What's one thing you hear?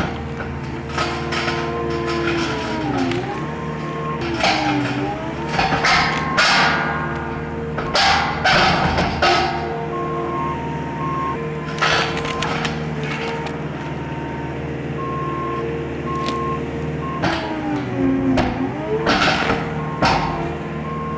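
Roots and wood crack and snap as a tree stump is pulled from the ground.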